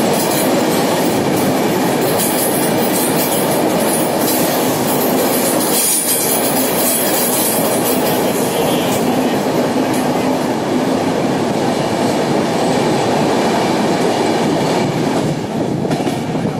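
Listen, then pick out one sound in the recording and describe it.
A passenger train roars through a tunnel, the noise echoing off the walls.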